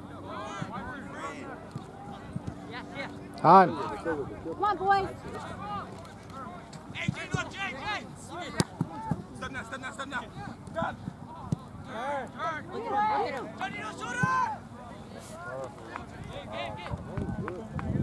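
Young men and onlookers shout and call out across an open field outdoors.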